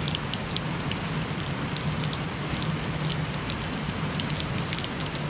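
Wind tosses and rustles the tree branches.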